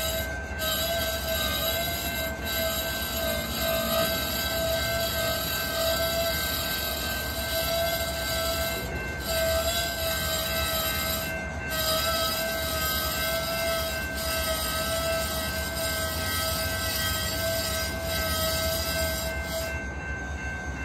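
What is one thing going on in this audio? A freight train rolls past close by with a low, steady rumble.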